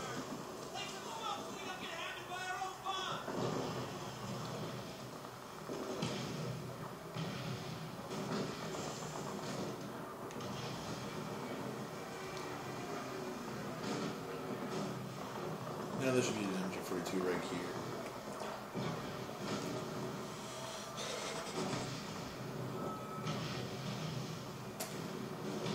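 Gunfire bangs and crackles through a small loudspeaker.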